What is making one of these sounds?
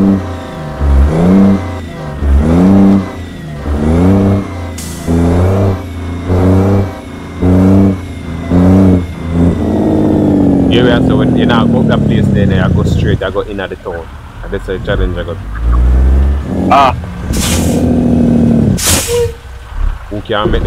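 A heavy truck engine revs up again and again as gears change.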